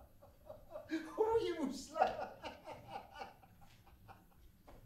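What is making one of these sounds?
An older man laughs loudly and heartily.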